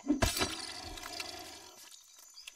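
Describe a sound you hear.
An axe strikes a creature with a heavy thud.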